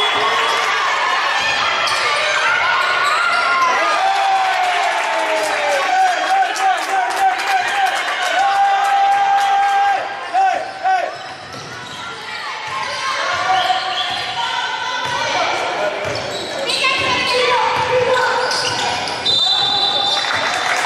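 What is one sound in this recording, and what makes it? A crowd of spectators chatters and cheers in an echoing hall.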